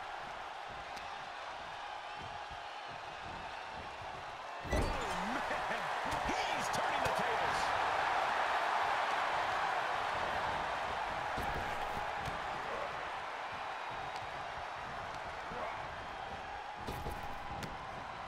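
A large crowd cheers in an arena.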